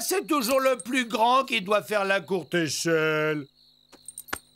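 A cartoon man speaks angrily in a gruff voice.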